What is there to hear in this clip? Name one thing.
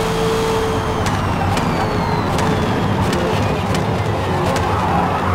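A racing car engine winds down as the car brakes.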